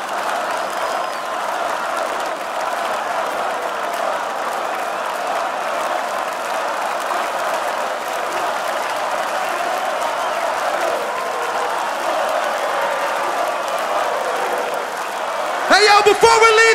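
A large crowd cheers and sings along loudly.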